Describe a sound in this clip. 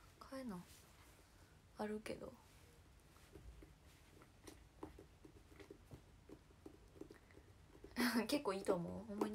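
A young woman speaks softly in short bursts, close to the microphone.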